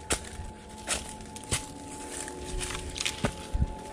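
Dry twigs snap underfoot.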